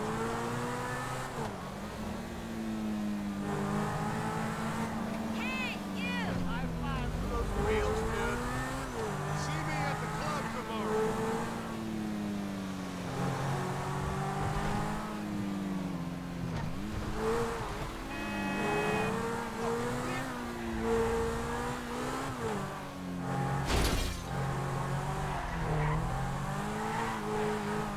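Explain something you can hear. A sports car engine revs and roars as it speeds along, rising and falling in pitch.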